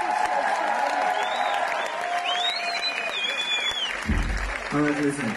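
A crowd cheers and screams loudly in a large echoing hall.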